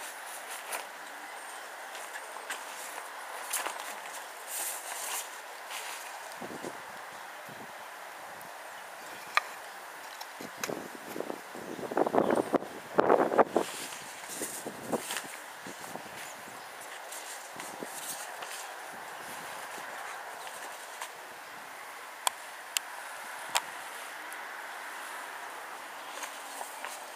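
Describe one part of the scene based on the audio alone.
A flock of birds chirps and calls overhead.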